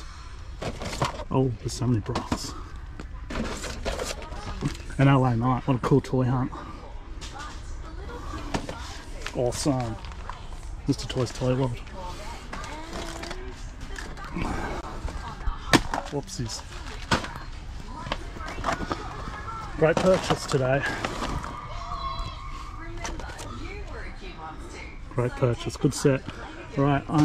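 Cardboard boxes rustle and knock as they are handled.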